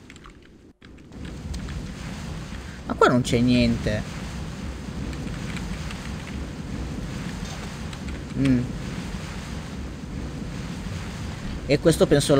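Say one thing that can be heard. Torch flames crackle and roar softly.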